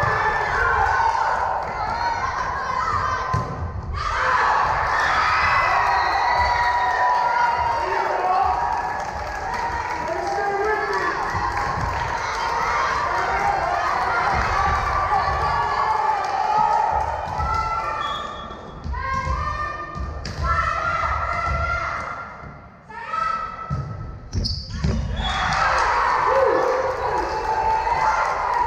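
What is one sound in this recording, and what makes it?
Young girls shout and cheer in a large echoing gym.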